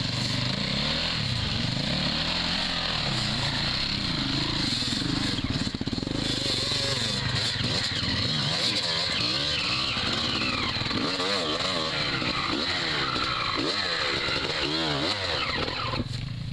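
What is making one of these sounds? Knobby tyres churn through mud and grass.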